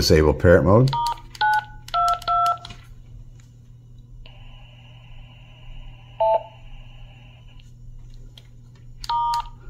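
Radio keys beep as buttons are pressed.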